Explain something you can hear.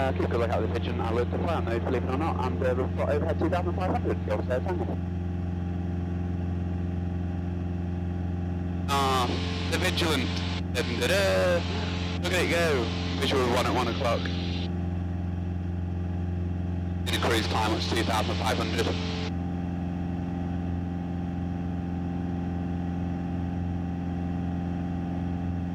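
The piston engine and propeller of a single-engine light aircraft drone steadily in cruise, heard from inside the cabin.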